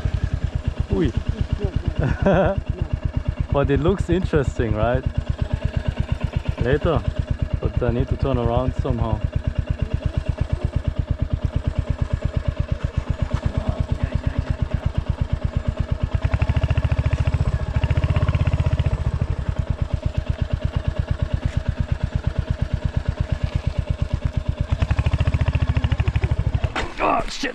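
A motorcycle engine thumps steadily at low revs and revs up louder now and then.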